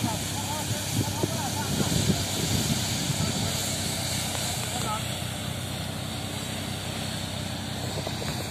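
Straw and grain spray out of a threshing machine with a rushing hiss.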